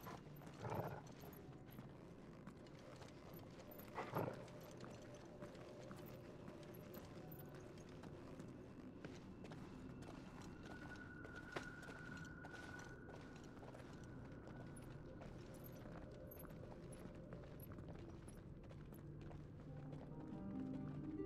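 Footsteps tap on stone steps in a large echoing hall.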